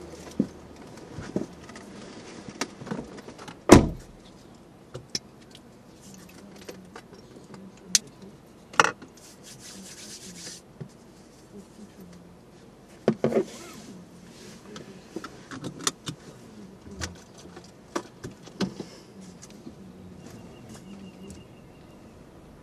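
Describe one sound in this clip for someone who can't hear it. A car engine hums quietly at idle.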